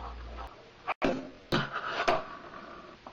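A fingerboard clacks onto a wooden box.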